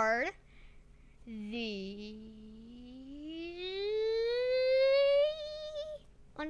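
A young boy calls out in a long, drawn-out voice that rises in pitch, close to a microphone.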